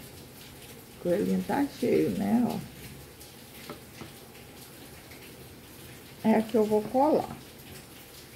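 A woman speaks calmly, close by, in short phrases.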